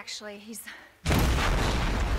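A large explosion bursts into a roaring fireball.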